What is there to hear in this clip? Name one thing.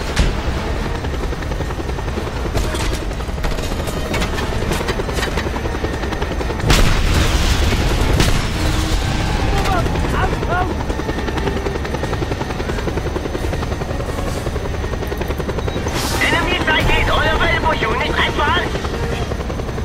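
A helicopter rotor thumps steadily overhead.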